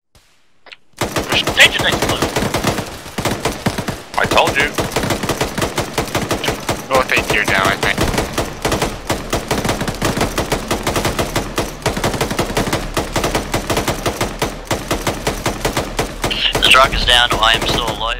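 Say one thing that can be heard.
A heavy machine gun fires rapid, continuous bursts.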